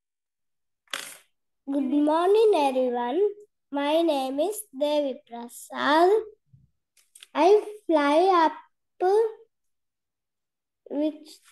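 A young boy sings through an online call.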